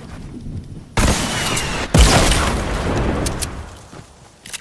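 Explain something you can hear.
Wooden walls crash loudly and break apart.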